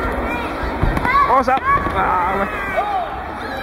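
Children cheer and shout excitedly.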